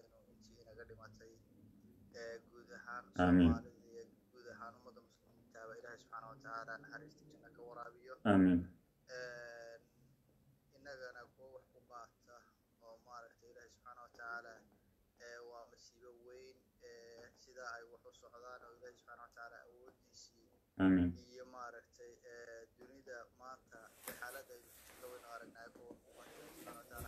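A man speaks calmly and earnestly close to a microphone.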